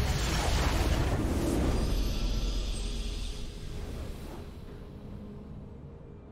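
A game victory fanfare plays and fades.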